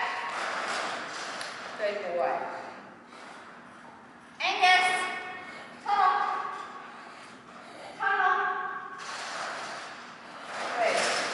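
A woman calls out to a dog in a high, encouraging voice in a large echoing room.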